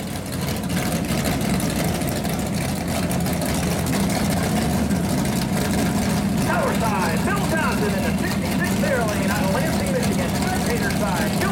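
A car engine rumbles loudly at idle.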